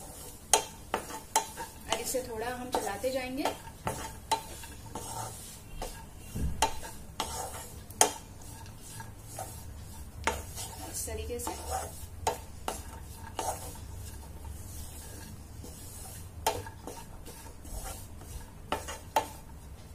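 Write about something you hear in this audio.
A wooden spatula scrapes and knocks against a pan while stirring dry food.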